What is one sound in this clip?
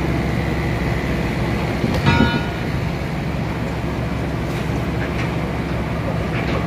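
A sawmill machine hums steadily and loudly.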